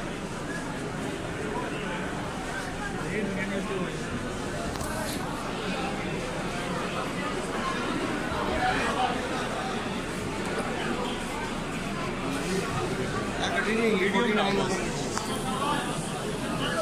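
A large crowd of men talks and shouts outdoors.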